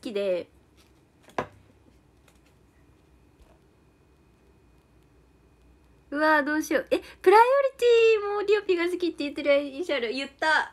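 A young woman talks close to a microphone, with animation.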